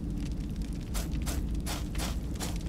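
Armoured footsteps clank on stone in quick steps.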